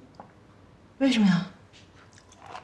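A young woman asks a short question, close by.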